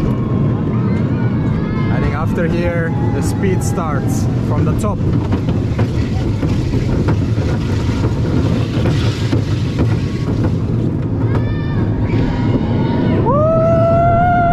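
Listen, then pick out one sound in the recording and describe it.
A roller coaster rumbles and clatters along its track.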